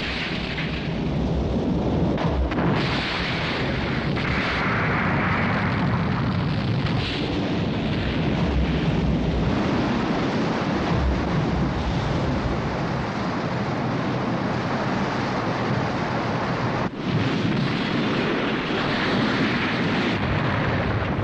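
Floodwater roars and churns loudly.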